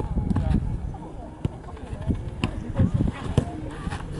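A foot kicks a ball with a dull thump.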